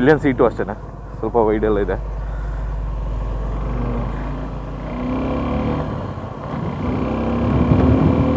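A motorcycle engine hums and revs as the bike rides along.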